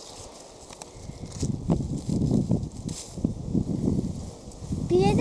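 Dry leaves rustle as a child rummages through them.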